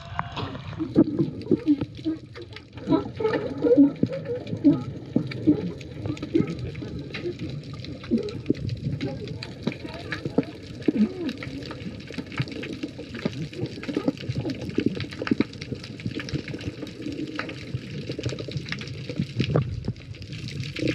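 Water bubbles and swirls, muffled underwater.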